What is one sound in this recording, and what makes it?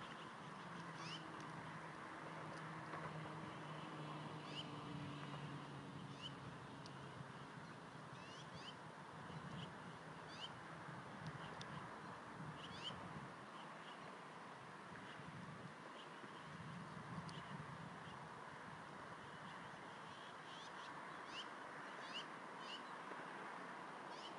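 Wind rustles steadily through branches outdoors.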